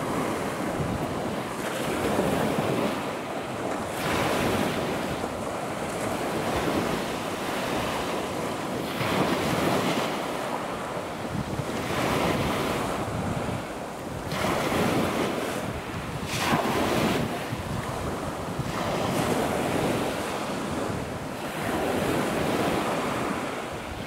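Choppy sea water laps and splashes in small waves.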